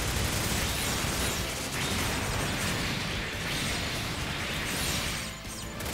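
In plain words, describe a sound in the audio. Loud electric blasts crackle and roar.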